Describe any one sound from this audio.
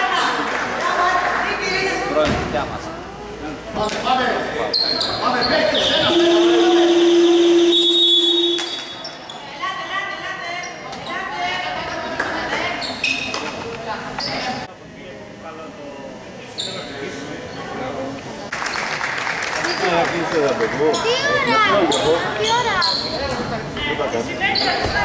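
A crowd of young women and spectators chatters and calls out in an echoing hall.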